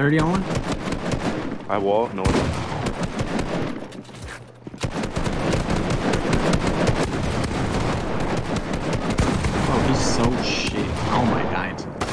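Rapid gunshots and clattering building sounds play from a video game.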